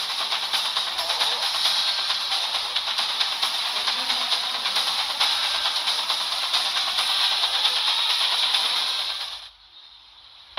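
A steady, dense hiss of battle noise plays.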